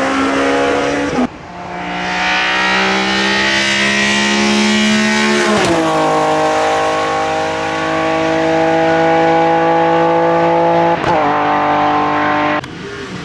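A loud race car engine roars at high revs and rises in pitch as it accelerates.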